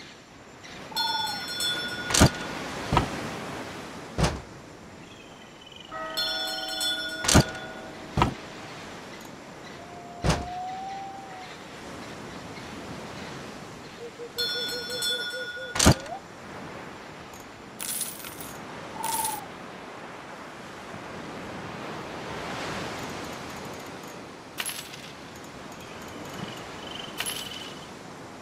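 Short electronic chimes and sharp clicks ring out now and then.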